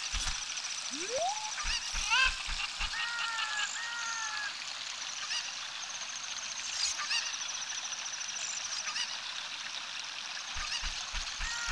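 A chicken clucks.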